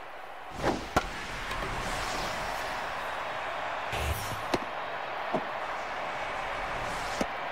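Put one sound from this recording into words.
A stadium crowd cheers and murmurs steadily.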